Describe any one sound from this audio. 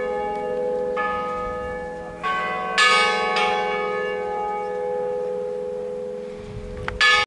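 A church bell rings loudly outdoors, its strokes ringing on and slowly fading.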